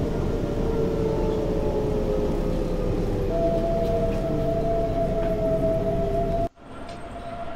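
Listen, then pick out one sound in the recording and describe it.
A train rumbles along the tracks and slows down with a whining motor.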